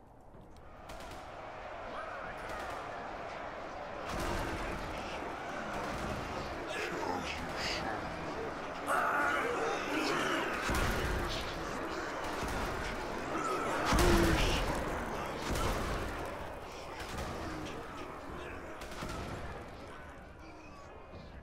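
A chaotic battle roars with crashing impacts and thuds.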